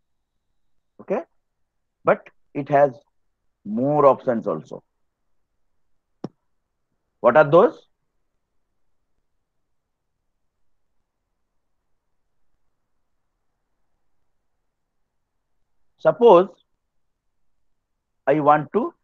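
A young man speaks calmly through a microphone, in short phrases with long pauses.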